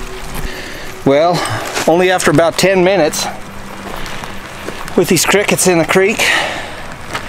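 A middle-aged man talks animatedly, close to the microphone, outdoors.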